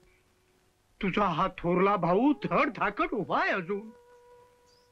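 An elderly man speaks earnestly and close by.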